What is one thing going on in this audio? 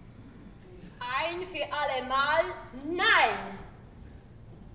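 A woman sings loudly in an operatic voice, her notes swooping up and down.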